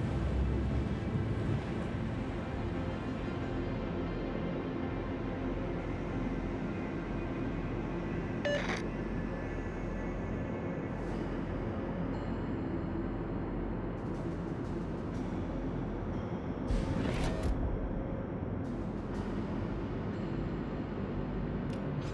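Waves wash and splash against a ship's hull.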